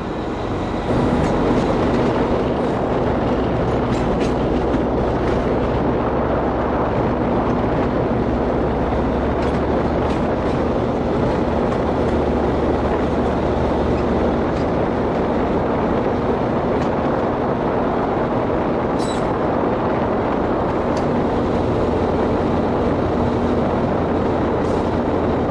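Train wheels click over rail joints and switches.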